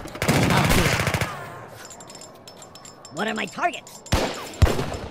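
Muskets fire in a battle.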